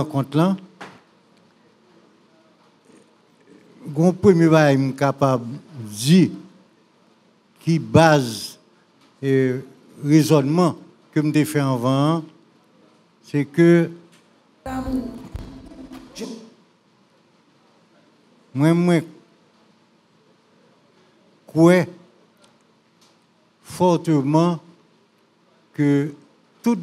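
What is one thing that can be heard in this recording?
An elderly man speaks slowly and thoughtfully into a microphone, with long pauses.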